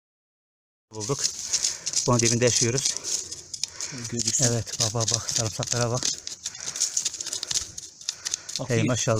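A stick scrapes through dry grass and soil.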